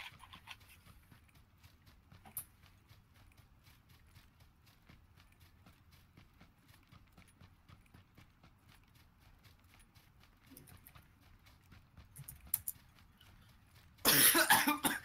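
Footsteps patter quickly through grass and over dirt.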